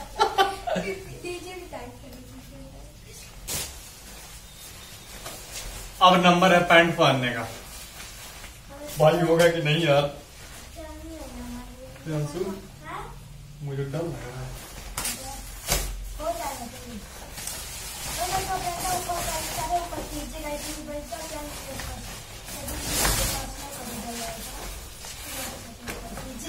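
A nylon rain suit rustles and crinkles as a man handles and pulls it on.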